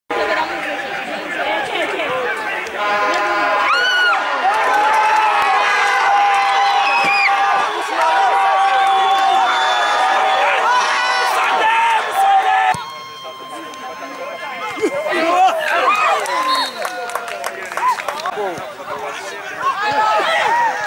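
A large crowd of spectators shouts and cheers outdoors.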